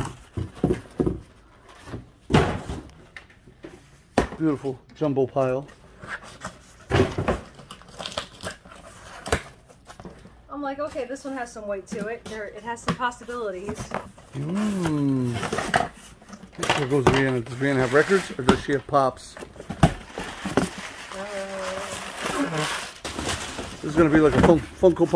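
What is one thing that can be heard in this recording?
Cardboard boxes scrape and thump as they are moved.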